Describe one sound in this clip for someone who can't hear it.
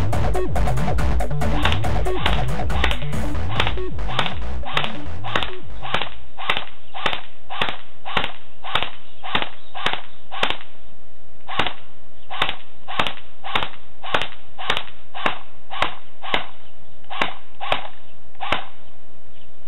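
Gunshots crack one after another at a steady pace outdoors.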